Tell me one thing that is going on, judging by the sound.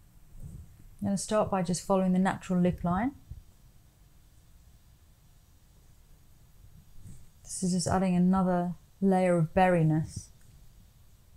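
A woman speaks calmly and close to a microphone, in short bursts.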